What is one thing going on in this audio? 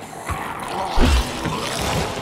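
A heavy blow thuds into a body.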